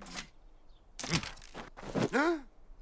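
A man speaks with animation in a high, character-like voice.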